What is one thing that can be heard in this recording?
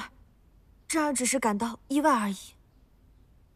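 A young woman speaks in surprise, close by.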